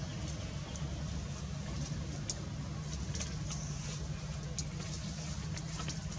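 Monkey footsteps patter on dry leaves and dirt.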